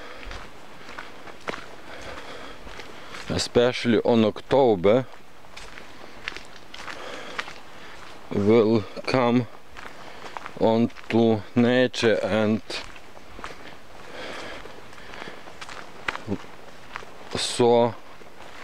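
Footsteps rustle and crunch through dense, leafy undergrowth.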